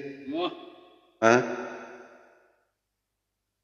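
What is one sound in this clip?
A man sings close to a microphone, holding long notes that ring out and fade.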